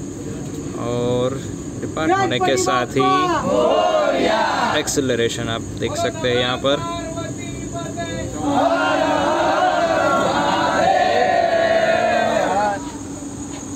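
A crowd of men talks and cheers loudly nearby.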